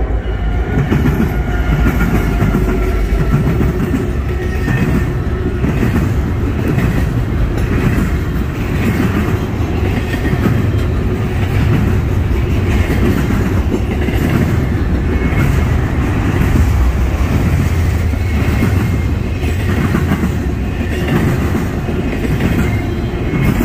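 Train wheels clatter rhythmically over the rail joints.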